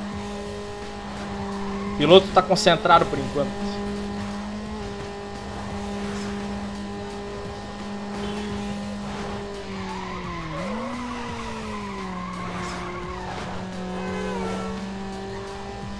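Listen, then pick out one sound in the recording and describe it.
A racing car engine drones steadily, dipping and rising again as the car slows into a turn.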